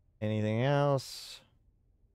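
A man exhales sharply into a close microphone.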